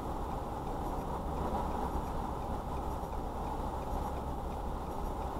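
A car drives slowly past.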